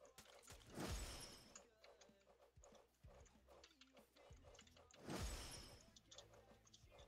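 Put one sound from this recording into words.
Loud magic blasts whoosh and boom.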